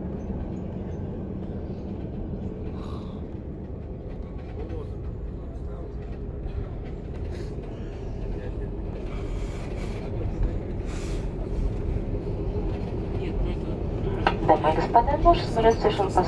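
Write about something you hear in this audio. A jet engine roars steadily from inside an aircraft cabin.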